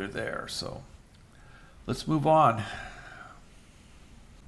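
A man speaks calmly and close to a microphone, in short phrases with pauses.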